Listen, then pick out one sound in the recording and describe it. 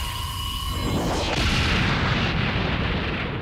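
A loud blast booms.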